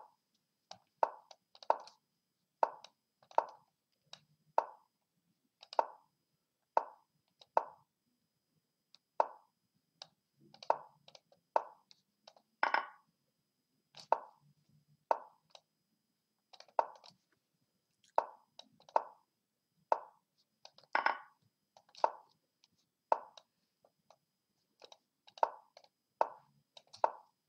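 Short, sharp clicks of chess pieces being moved come quickly, again and again.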